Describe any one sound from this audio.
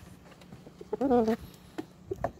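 A rooster gives a short throaty cluck close by.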